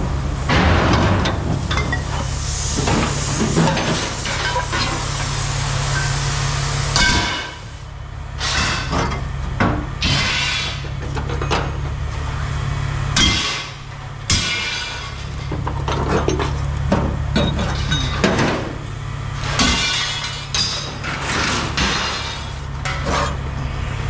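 A low engine hums steadily outdoors.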